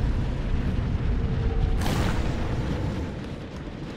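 A swirling energy vortex roars loudly.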